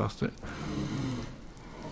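Fiery creatures crackle and breathe close by.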